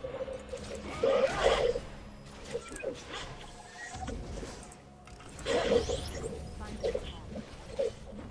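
Game spell effects burst and whoosh during a fight.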